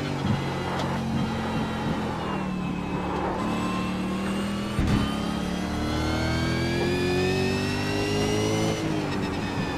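A race car engine roars steadily, its pitch dropping on braking and then climbing as it speeds up through the gears.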